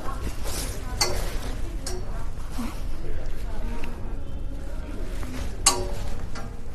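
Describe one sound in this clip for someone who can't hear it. Clothes hangers clack against a metal rail.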